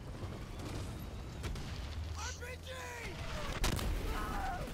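Explosions and gunfire rumble in a battle.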